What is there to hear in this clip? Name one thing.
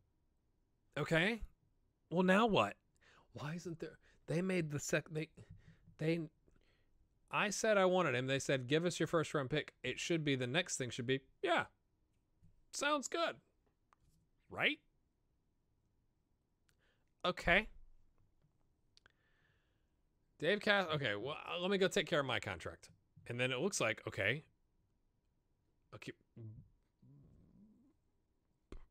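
A man talks with animation close to a microphone, in bursts with pauses.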